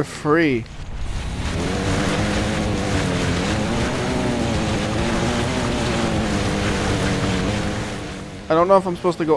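Water splashes and churns around wheels.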